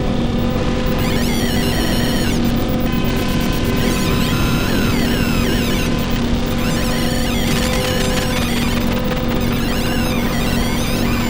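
Fluttering, bubbling electronic chirps glide up and down.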